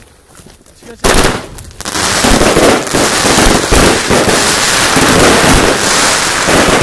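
Fireworks crackle and pop loudly and densely overhead.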